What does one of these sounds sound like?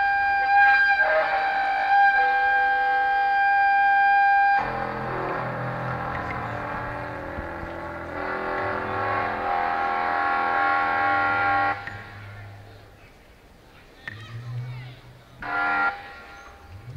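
An electric guitar plays long, ringing notes through an amplifier.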